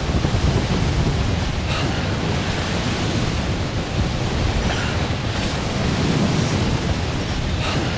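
A small vehicle's engine rumbles low as it drives over snow.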